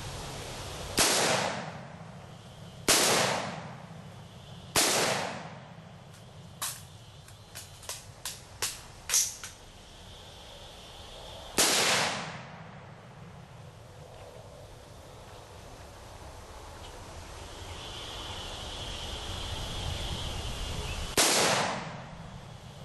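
A rifle fires loud single shots outdoors, each echoing briefly.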